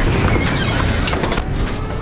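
Footsteps scuff on pavement.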